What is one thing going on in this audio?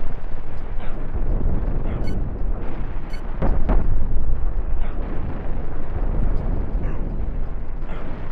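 Spaceship cannons fire in a video game.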